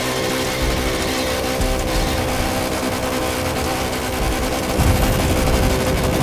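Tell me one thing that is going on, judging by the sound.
A sports car engine roars steadily at high revs.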